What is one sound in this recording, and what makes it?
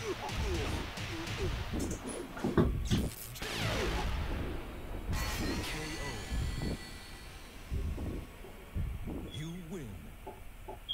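Heavy blows land with deep, booming thuds.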